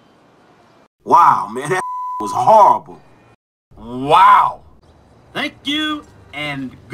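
A man speaks with animation, close by.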